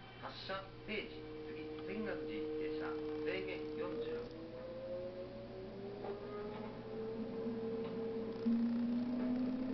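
An electric train's traction motors whine, rising in pitch as it accelerates.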